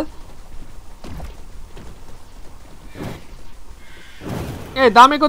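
A video game's magic attack whooshes and bursts repeatedly.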